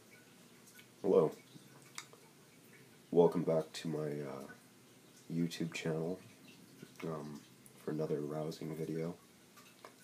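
A young man talks casually and close to a microphone, in short bursts.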